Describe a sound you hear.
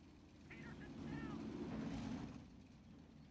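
A tank engine rumbles low.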